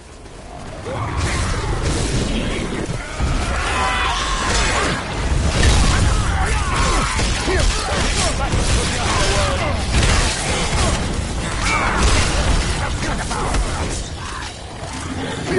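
Blows strike and thud in a fierce fight.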